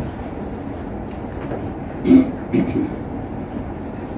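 A book is set down with a soft thump.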